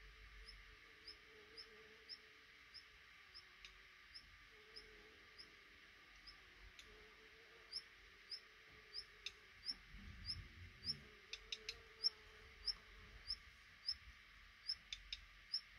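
Baby birds in a nest chirp softly and repeatedly.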